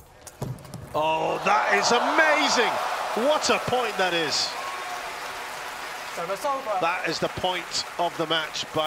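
A crowd cheers and whistles loudly in a large hall.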